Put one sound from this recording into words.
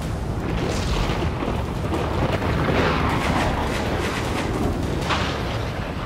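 Thunder rumbles and cracks.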